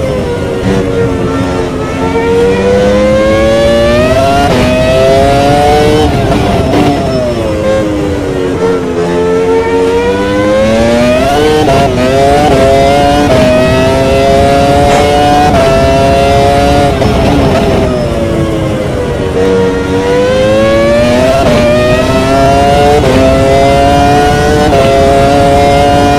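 A racing car engine screams loudly, rising in pitch through the gears and dropping as it brakes for corners.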